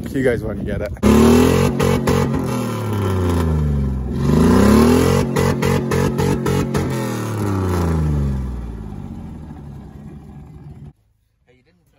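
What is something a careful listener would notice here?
A tyre spins and churns through mud.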